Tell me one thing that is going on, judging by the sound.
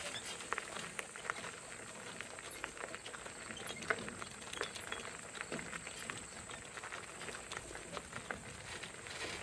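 Hooves clop steadily on a gravel road.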